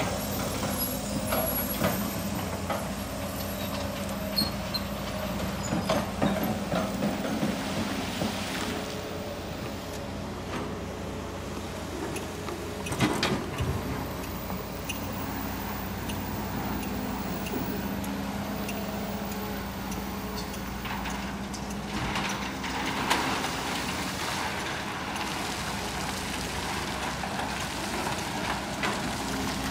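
Rocks clatter and thud as they are dumped into a truck bed.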